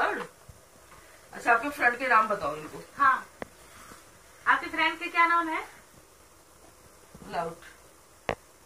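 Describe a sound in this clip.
A woman speaks with animation close by, in short bursts.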